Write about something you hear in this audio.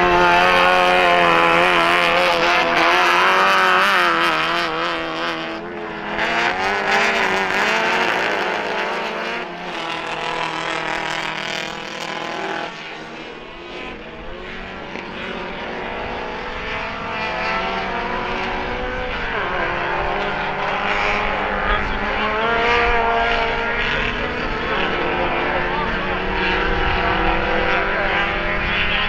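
Several race car engines roar and rev, rising and falling in pitch.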